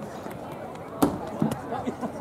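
A pole vaulter's pole knocks sharply into the planting box.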